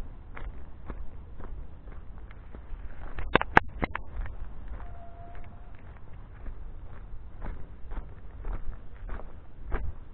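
Footsteps crunch steadily on a dirt trail.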